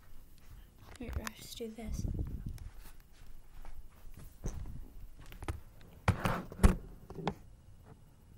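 A girl speaks close to a microphone, quietly and casually.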